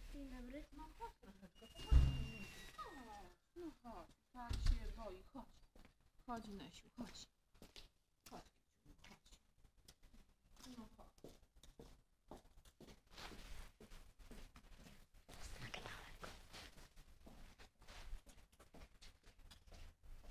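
Fabric rustles and rubs right against the microphone.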